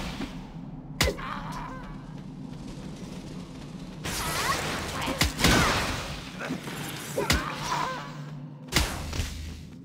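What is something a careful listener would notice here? Sharp game hit sounds strike now and then.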